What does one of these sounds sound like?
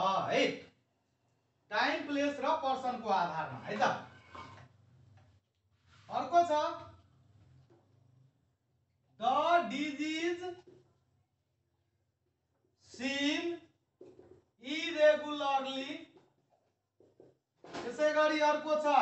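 A man speaks calmly in short bursts, as if explaining.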